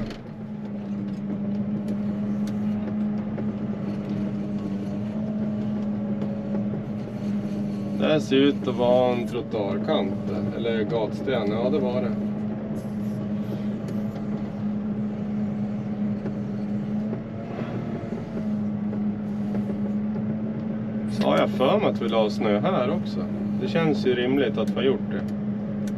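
A plow blade scrapes along snow.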